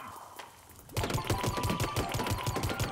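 Rapid shots fire in quick bursts.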